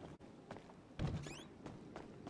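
A door swings open with a thud.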